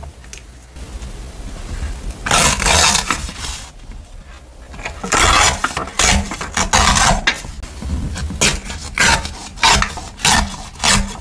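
Paper rustles and crinkles close by as it is folded and handled.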